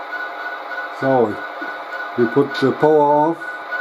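A model locomotive's horn sounds in several blasts, one short and one longer.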